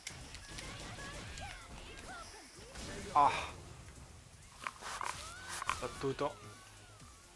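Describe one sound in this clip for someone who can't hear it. Punches and kicks land with sharp, heavy smacks.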